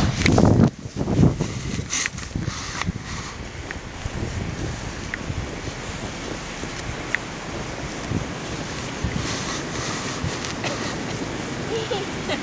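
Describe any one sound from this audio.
A small child's boots crunch through snow.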